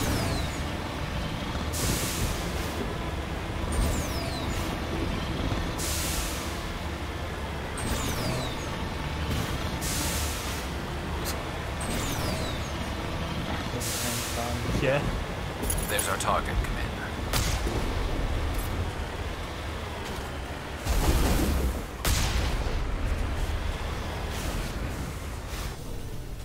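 A vehicle's engine hums steadily as it drives through water.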